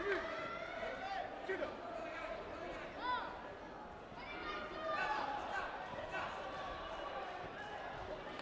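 Many voices of men and women chatter in a large echoing hall.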